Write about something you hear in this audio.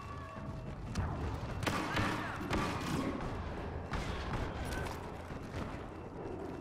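Blaster shots fire in sharp bursts.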